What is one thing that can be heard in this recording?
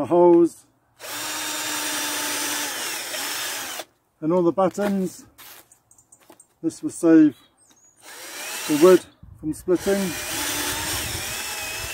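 A cordless drill whirs as it drives screws into wood.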